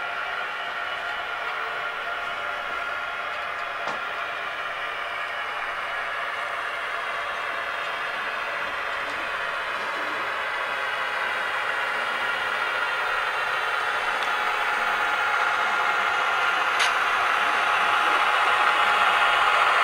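A model train's motor hums steadily and grows louder as it comes closer.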